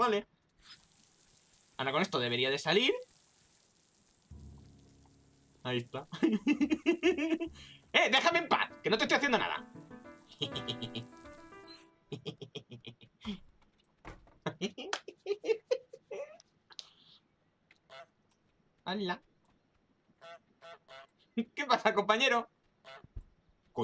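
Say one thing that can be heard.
A man laughs out loud.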